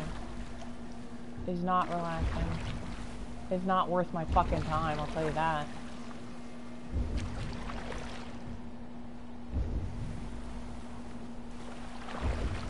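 Waves lap gently against a wooden boat.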